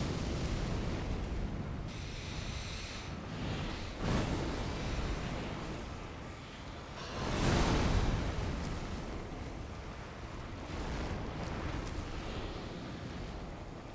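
A sword whooshes through the air.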